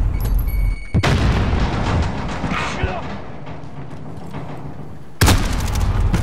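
A rifle fires a loud, sharp shot that booms and echoes away.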